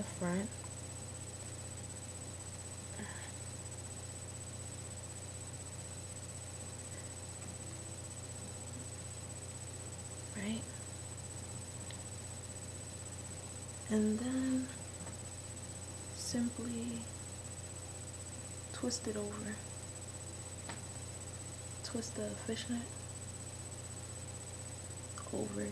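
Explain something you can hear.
A young woman speaks calmly and close by, in short bursts with pauses.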